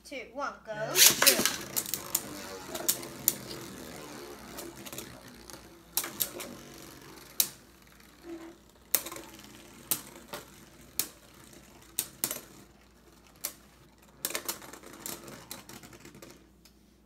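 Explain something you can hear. Spinning tops whir and clatter against each other in a plastic arena.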